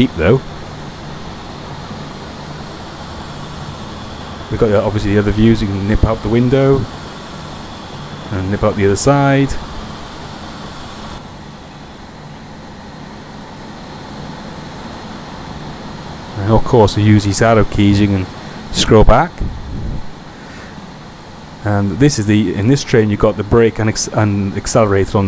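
A train engine hums steadily as the train runs along the tracks.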